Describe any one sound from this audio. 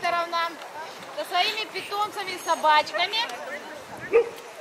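Dogs yelp and howl excitedly outdoors.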